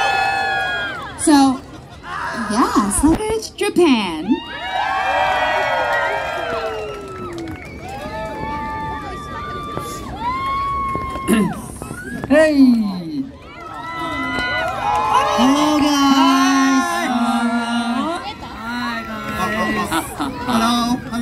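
A crowd of young fans screams and cheers loudly outdoors.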